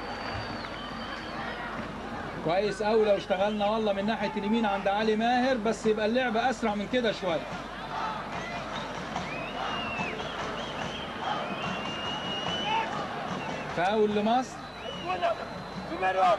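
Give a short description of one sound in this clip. A crowd roars and cheers in a large open stadium.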